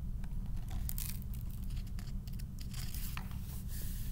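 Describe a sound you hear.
Book pages rustle as they are turned.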